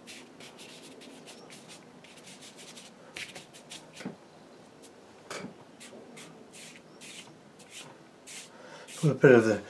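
A wide brush swishes and scrapes across damp paper.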